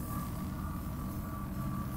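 An electric tool crackles and buzzes.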